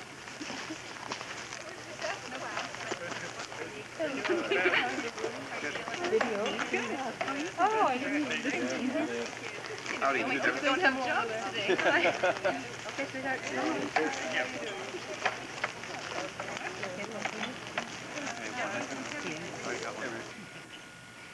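A group of men and women chat and laugh nearby.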